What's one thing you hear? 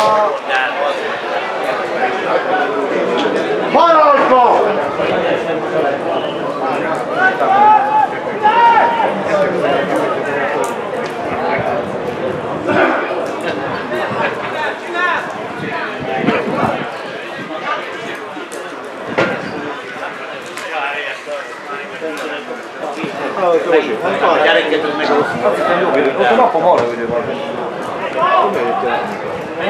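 Young men shout to each other across an open pitch outdoors.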